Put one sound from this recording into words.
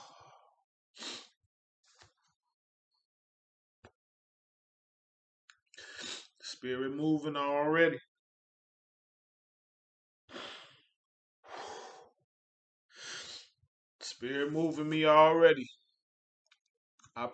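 A man breathes heavily in short, sharp bursts close by.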